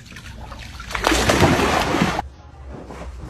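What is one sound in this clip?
A dog splashes heavily into water.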